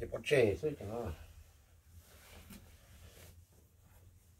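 Cloth rustles as a jacket is handled.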